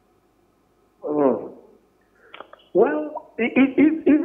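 A man speaks calmly over a phone line.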